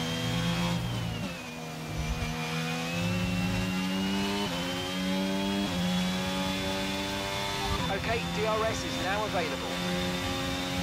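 A racing car engine whines loudly, its pitch dropping and rising as gears shift.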